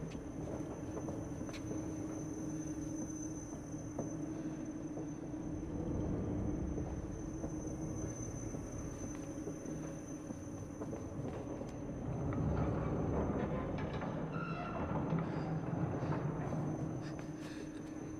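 Small footsteps run across a hard floor.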